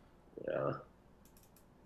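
A man says a short word into a microphone.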